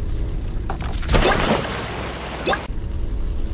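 Water splashes loudly as a car crashes into it.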